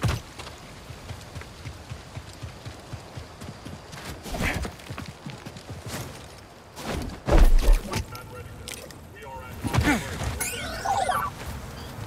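Footsteps crunch on dirt and grass.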